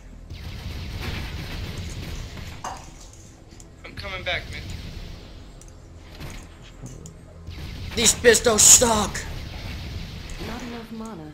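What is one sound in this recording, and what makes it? Magic spells crackle and burst during a fight.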